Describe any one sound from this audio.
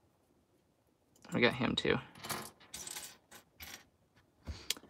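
Small plastic pieces rattle and click as a hand sorts through them.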